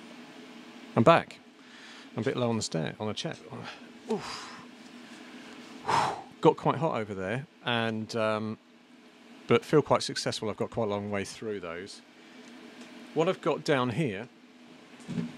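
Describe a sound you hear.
A middle-aged man talks casually into a close microphone.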